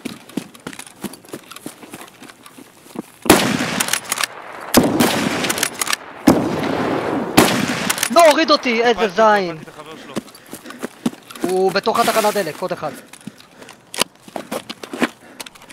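Footsteps crunch on gravel and grass.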